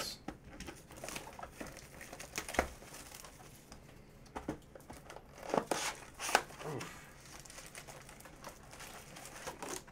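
Plastic wrapping crinkles as it is torn off a box.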